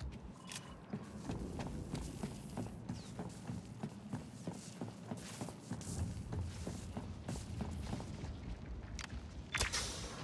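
Footsteps clank quickly on a metal floor.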